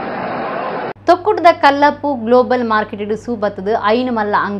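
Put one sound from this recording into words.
A woman news presenter speaks clearly and steadily into a microphone.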